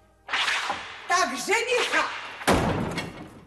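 A woman laughs loudly and gleefully.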